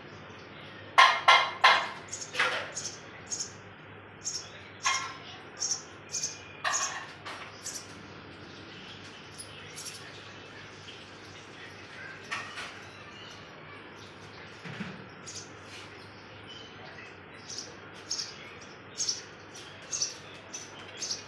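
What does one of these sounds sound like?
A baby bird chirps loudly and shrilly in short bursts.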